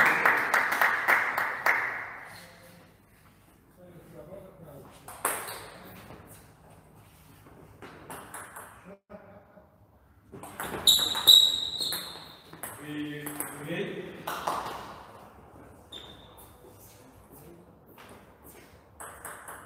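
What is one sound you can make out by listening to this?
A ping-pong ball clicks quickly back and forth off paddles and a table in an echoing hall.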